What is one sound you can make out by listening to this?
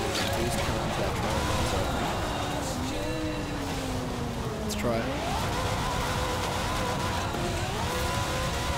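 A car engine revs up and down, dropping and climbing in pitch as the gears change.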